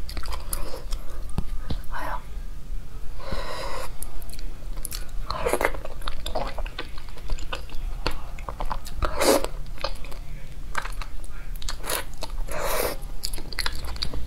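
A young woman slurps food loudly.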